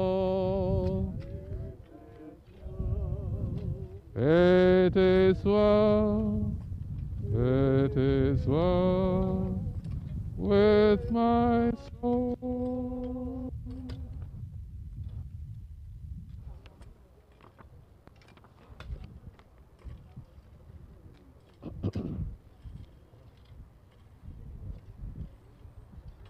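Shovels scrape and thud into loose soil.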